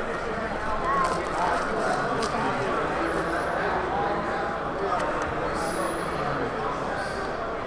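Plastic wrap crinkles as hands tear it off a box.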